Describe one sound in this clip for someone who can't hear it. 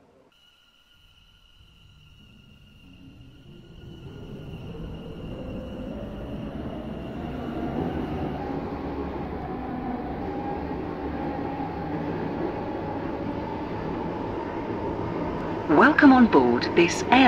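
A train motor whirs and rumbles, rising as the train speeds up.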